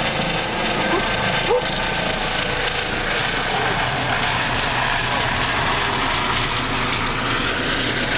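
A helicopter's rotor thuds loudly overhead.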